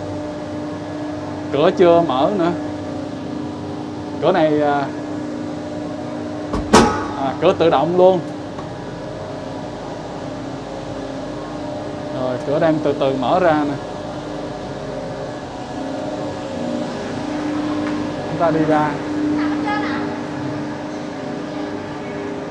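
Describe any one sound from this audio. A cable car cabin rolls through a station with a steady mechanical hum.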